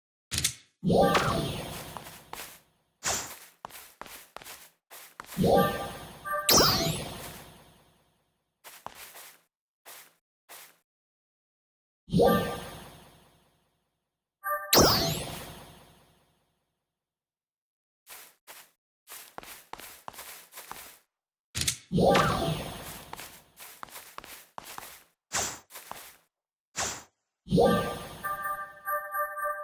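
A game menu opens with a bright chime.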